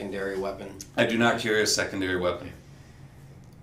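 A man speaks calmly.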